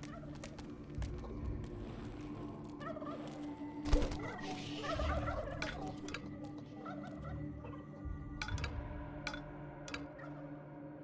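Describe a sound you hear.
Short interface clicks sound as tiles are placed in a game.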